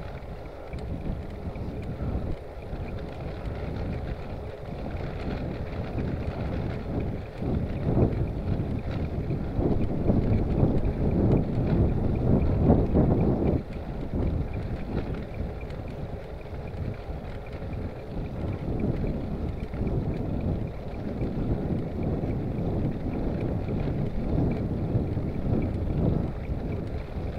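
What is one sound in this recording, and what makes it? Wind rumbles against a microphone on a moving bicycle.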